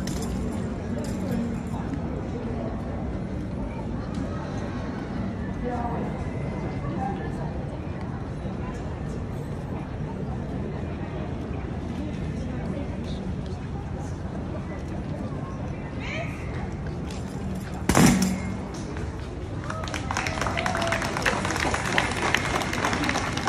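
A crowd murmurs outdoors in the open air.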